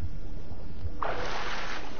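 Water splashes loudly as a figure breaks the surface.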